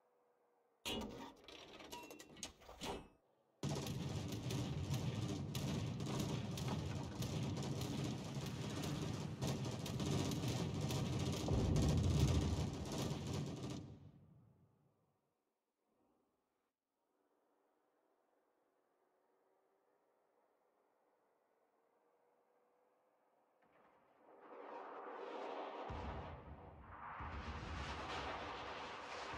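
Water rushes and splashes along a ship's hull.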